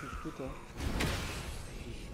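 An axe strikes with a heavy thud.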